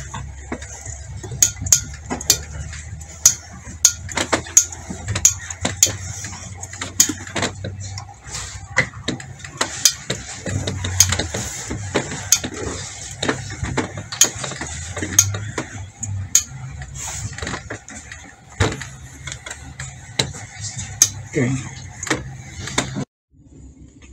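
An iron knocks and thuds against a padded board.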